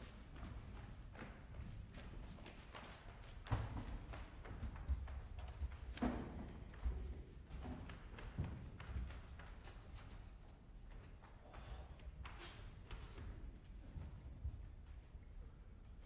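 Footsteps thump and scuff on a wooden stage.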